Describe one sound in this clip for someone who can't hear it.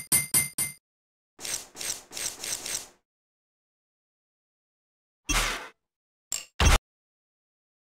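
Electronic clicks and chimes sound in quick bursts.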